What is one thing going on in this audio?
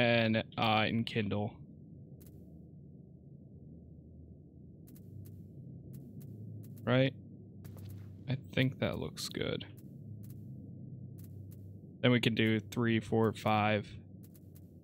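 A man talks casually into a close microphone.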